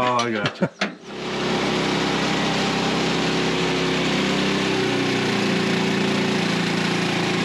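A sawmill engine runs loudly and steadily.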